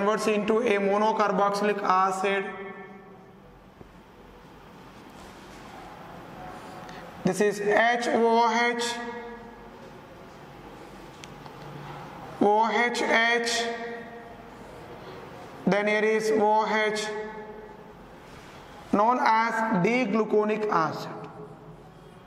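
A man speaks calmly in short phrases, as if explaining.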